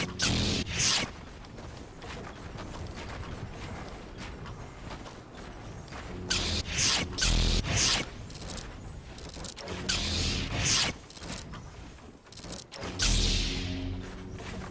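Loud game gunshots blast in short bursts.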